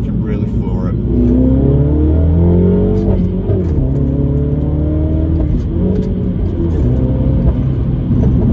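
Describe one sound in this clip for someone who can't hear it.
A car engine roars as it accelerates, rising in pitch and dropping back with each gear change.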